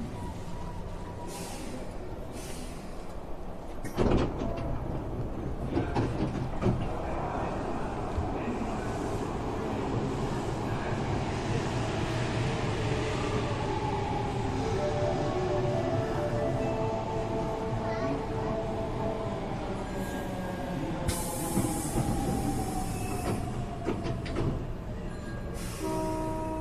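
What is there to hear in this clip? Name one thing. A train hums steadily while standing at a platform.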